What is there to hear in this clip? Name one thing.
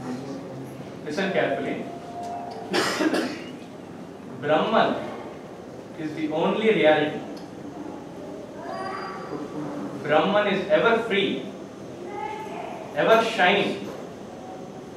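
A man speaks calmly, heard close by.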